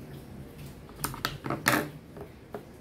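Scissors snip thread with a sharp click.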